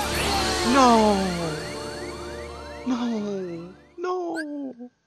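A loud magical blast rings out with falling tones.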